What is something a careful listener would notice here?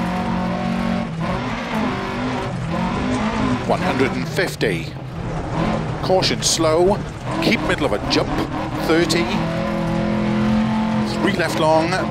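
A rally car engine roars loudly, revving up and down through gear changes.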